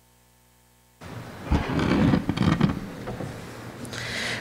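A man speaks through a microphone in a large hall.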